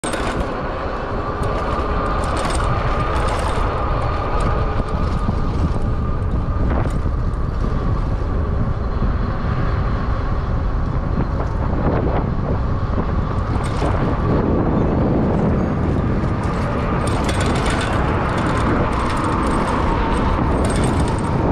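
A vehicle rolls steadily along a city street with a low rumble.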